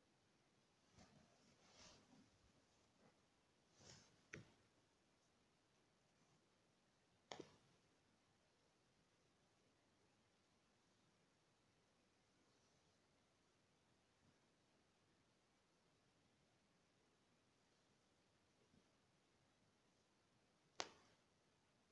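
Hands rustle and tap against a carpet.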